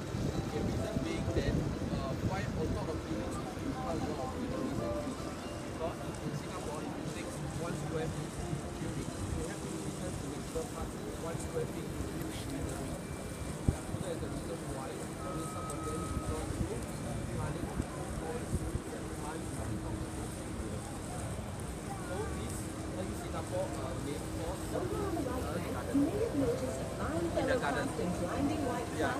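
A boat engine hums steadily while moving along a river.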